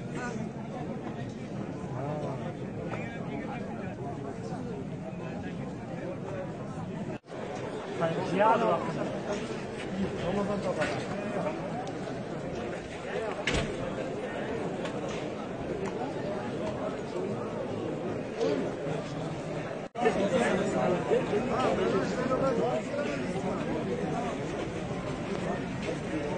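A large crowd of men murmurs and talks outdoors.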